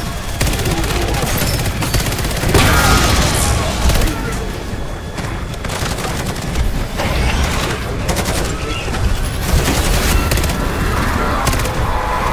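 Loud explosions boom.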